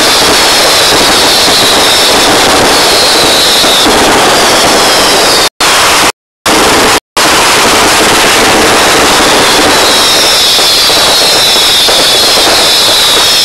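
Many people whistle shrilly in a crowd.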